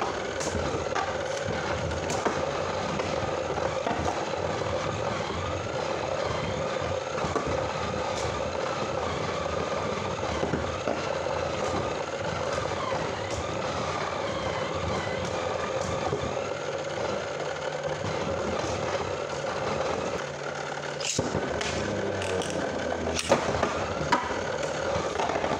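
Spinning tops whir and rattle against a plastic arena.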